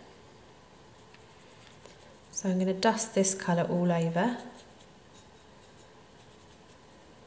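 A small brush dabs and scrapes softly on a ceramic plate.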